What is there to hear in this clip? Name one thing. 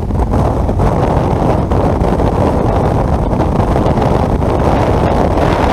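Tyres roar steadily on a road.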